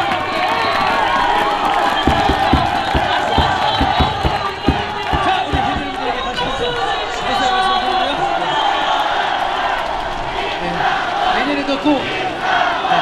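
A crowd cheers and chants in the background.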